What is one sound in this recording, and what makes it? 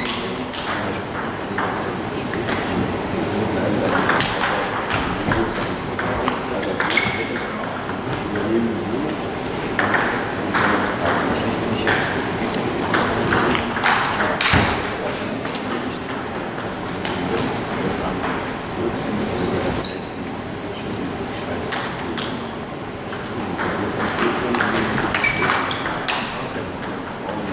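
A table tennis ball clicks back and forth between paddles and the table in a large echoing hall.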